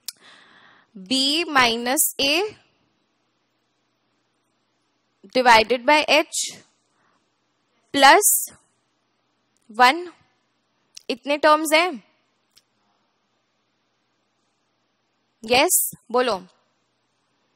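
A young woman explains calmly into a microphone, in short phrases with pauses.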